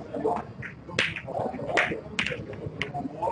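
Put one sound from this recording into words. Snooker balls click together.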